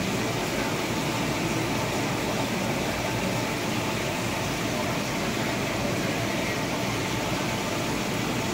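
Air bubbles from an aquarium sponge filter bubble up through water.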